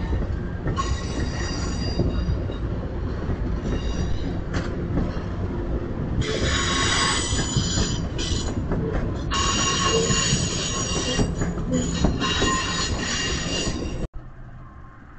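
A train rolls past close by with a heavy rumble.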